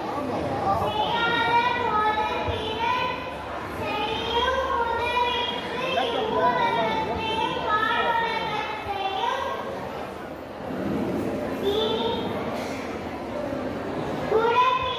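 A young girl speaks clearly and with expression through a microphone and loudspeakers in a large echoing hall.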